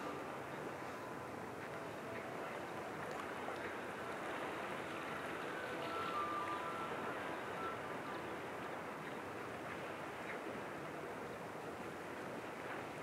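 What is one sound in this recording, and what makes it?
Calm water laps softly against rocks along the shore.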